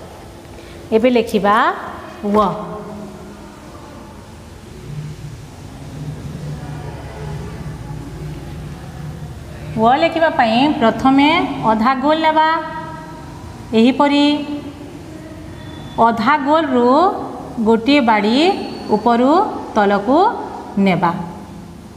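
A woman speaks clearly and steadily.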